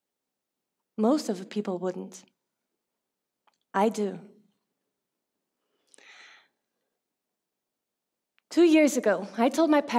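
A young woman speaks calmly and clearly through a headset microphone, with pauses.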